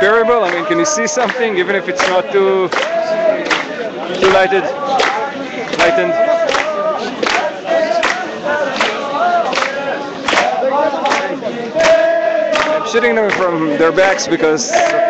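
A large outdoor crowd chants together.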